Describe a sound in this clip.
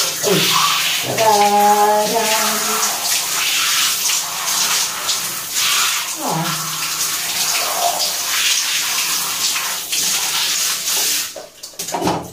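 Water from a shower head sprays and splashes with a steady hiss.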